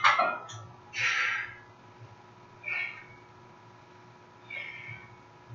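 A man exhales forcefully with effort, close by.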